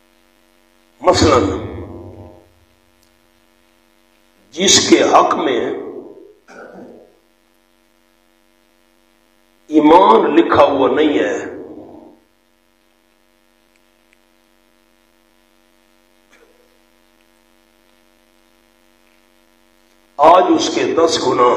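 A man speaks with feeling into a microphone, in short phrases with long pauses.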